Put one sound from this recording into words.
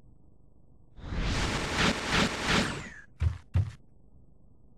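A video game sword strikes with a crackling magic whoosh.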